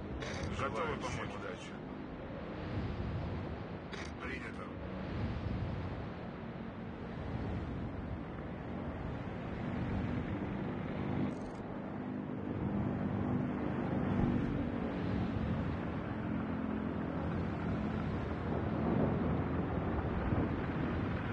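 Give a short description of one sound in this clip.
A ship's engine rumbles steadily.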